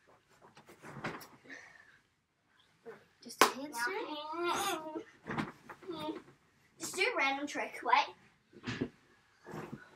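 A child thumps down onto a soft mattress.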